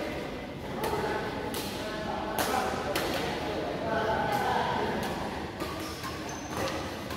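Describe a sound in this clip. Shuttlecocks are struck sharply with rackets, echoing in a large hall.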